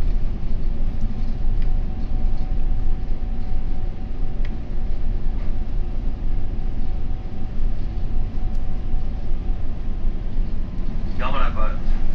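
A vehicle's engine rumbles low and steady.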